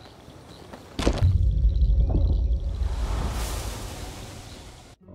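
A deep magical rumble swells up loudly and then slowly fades.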